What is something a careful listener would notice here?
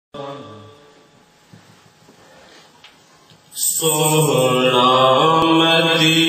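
A man chants loudly into a microphone, heard through a loudspeaker.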